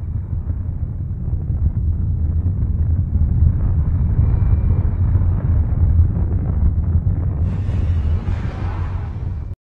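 Spaceship engines rumble deeply and steadily.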